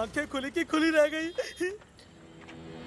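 A young man talks cheerfully up close.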